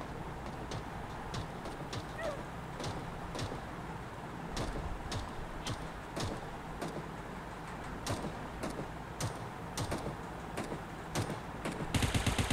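Footsteps patter quickly across the ground.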